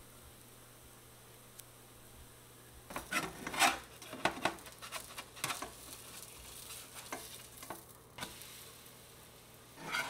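Batter sizzles quietly in a hot pan.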